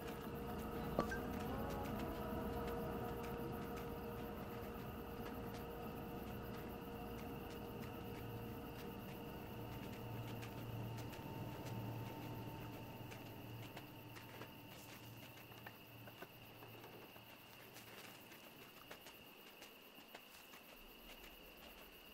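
A fox's paws crunch softly through snow.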